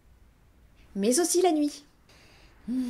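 A young woman speaks cheerfully close by.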